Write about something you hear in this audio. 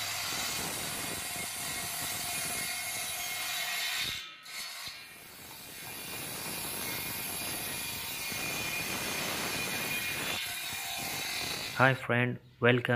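A table saw whines as it cuts through wood.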